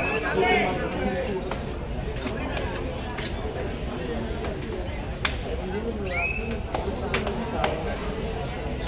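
A crowd of spectators chatters and shouts.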